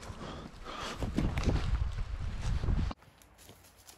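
Footsteps crunch loudly on dry leaves and stones close by.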